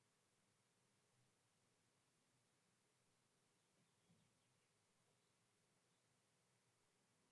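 A man breathes slowly and softly close to a microphone.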